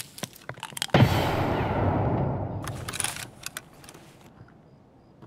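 An explosion booms loudly and rumbles away.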